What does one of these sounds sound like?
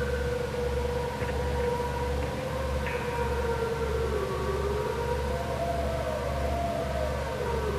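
An electric guitar plays sustained, bending notes through an amplifier in a large echoing hall.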